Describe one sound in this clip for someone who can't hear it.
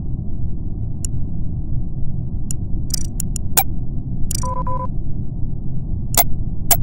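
Sharp clicks and short beeps sound from a game menu.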